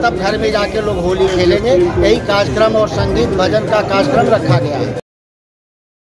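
A middle-aged man speaks with animation into a microphone, close by.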